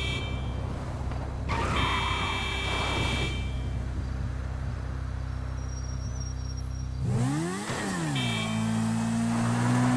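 Bicycle tyres roll and crunch over rough dirt.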